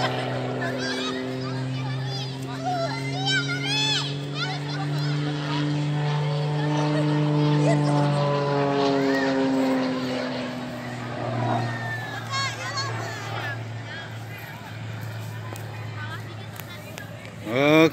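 Birds chirp and twitter nearby.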